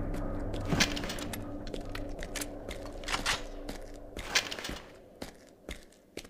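A submachine gun is reloaded with metallic clicks.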